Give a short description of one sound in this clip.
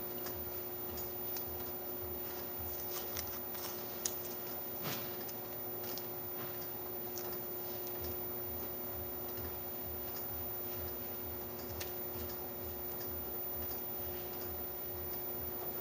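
Plastic film crinkles and rustles in a hand.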